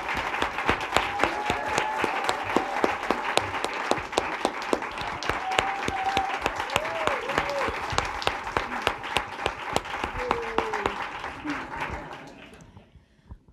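An audience applauds and cheers in a hall.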